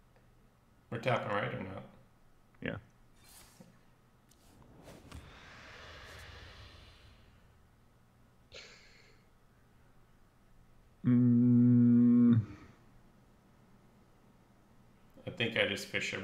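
A man speaks briefly into a microphone, close up.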